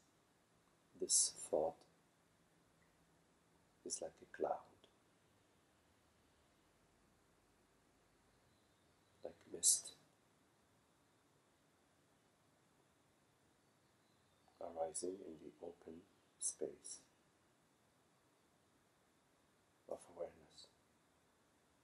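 A middle-aged man speaks calmly nearby in short phrases with pauses.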